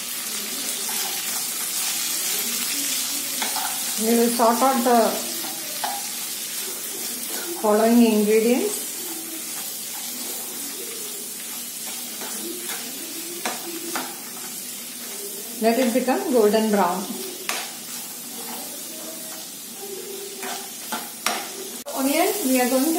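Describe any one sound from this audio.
A metal spatula scrapes and knocks against a pan.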